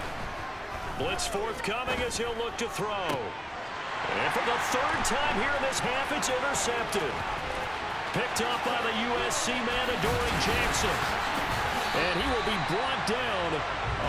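A large stadium crowd roars and swells louder.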